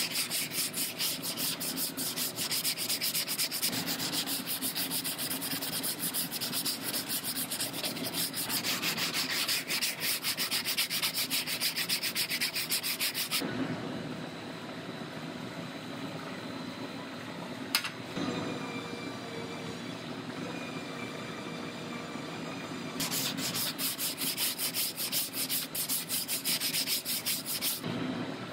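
A sanding block rubs back and forth quickly on a panel.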